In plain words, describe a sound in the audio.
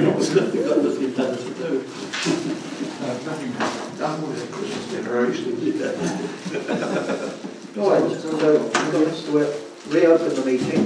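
A man speaks calmly in a room with a slight echo.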